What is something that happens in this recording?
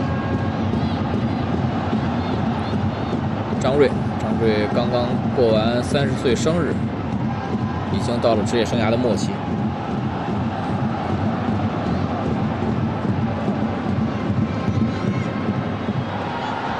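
A large crowd murmurs and cheers steadily in a big open stadium.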